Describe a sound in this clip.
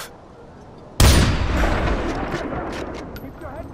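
A rifle fires a single loud shot that rumbles and echoes away.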